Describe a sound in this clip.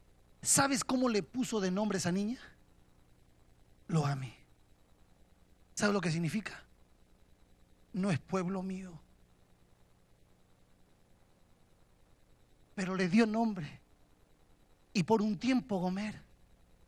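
A middle-aged man preaches passionately into a microphone in short, forceful bursts, heard over loudspeakers.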